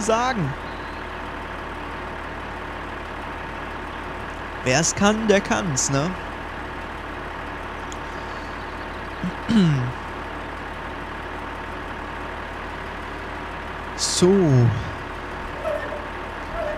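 A combine harvester engine hums steadily.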